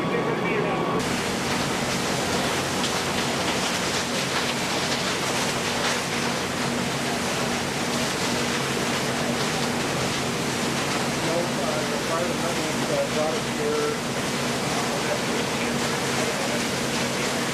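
Water sprays hard from a fire hose with a steady rushing hiss.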